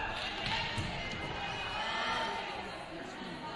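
Young volleyball players shout and cheer in an echoing gym.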